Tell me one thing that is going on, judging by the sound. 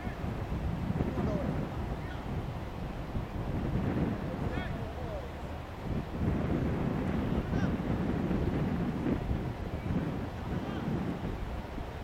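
Men talk casually at a distance outdoors.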